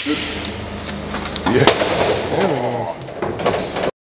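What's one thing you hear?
A man grunts with strain while lifting a heavy stone.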